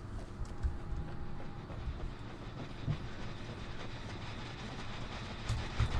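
Footsteps thud quickly across wooden boards.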